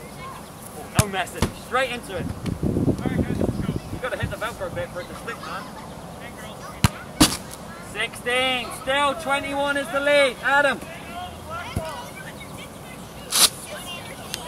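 A ball thuds on the ground.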